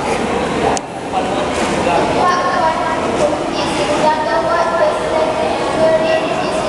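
A young woman speaks into a microphone, heard through loudspeakers in an echoing hall.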